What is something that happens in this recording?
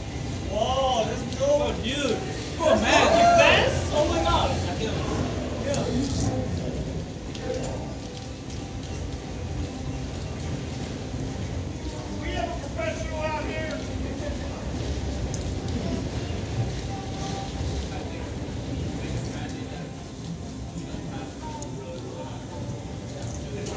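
Bumper cars hum and whir as they roll around a large echoing hall.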